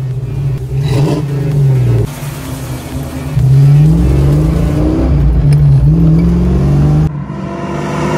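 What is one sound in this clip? A car engine idles with a deep rumble and revs up several times.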